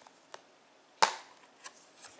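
A plastic case snaps open with a click.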